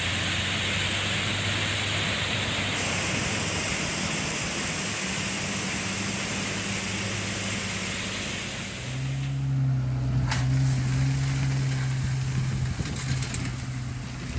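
Gravel pours from a truck bed with a steady rushing hiss.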